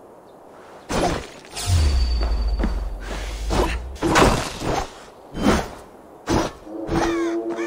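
A blade strikes with heavy thuds and swishes.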